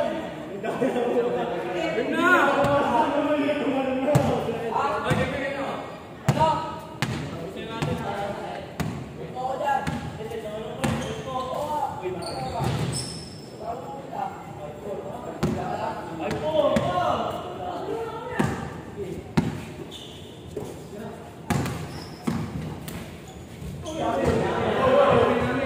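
Young men shout and call out to each other across an echoing hall.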